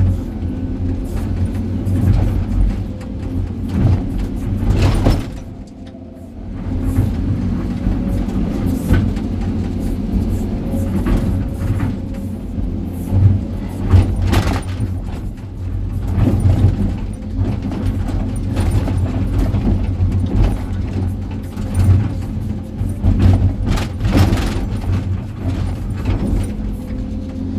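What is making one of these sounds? Hydraulics whine as an excavator arm moves.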